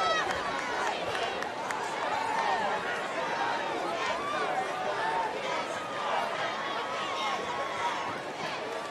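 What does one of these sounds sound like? A large outdoor crowd of men and women chatters and calls out.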